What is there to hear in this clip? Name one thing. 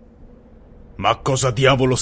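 A man speaks in a tense, low voice.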